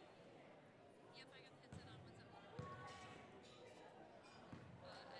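Girls chatter and call out across a large echoing gym.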